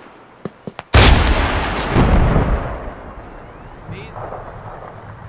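A loud explosion booms close by and rumbles away.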